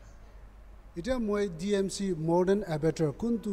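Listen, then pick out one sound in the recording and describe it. A man speaks clearly into a microphone close by.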